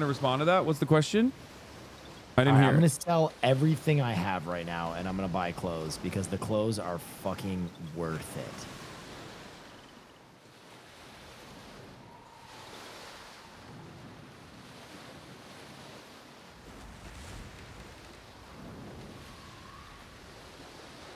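Waves splash against a sailing boat's hull.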